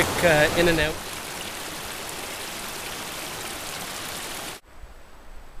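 A stream trickles over stones.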